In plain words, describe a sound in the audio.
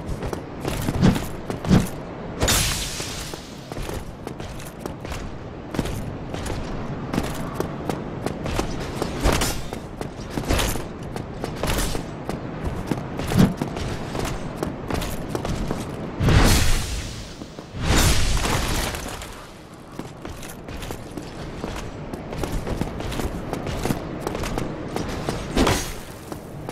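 Metal weapons clang against a shield in a fight.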